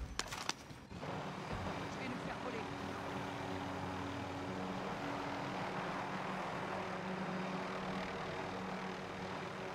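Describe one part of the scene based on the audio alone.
A helicopter engine hums and its rotor whirs steadily.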